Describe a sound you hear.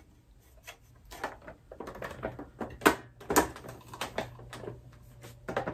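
An accordion's parts click and knock as they are handled.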